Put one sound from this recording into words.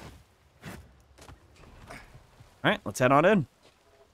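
Footsteps run across grass.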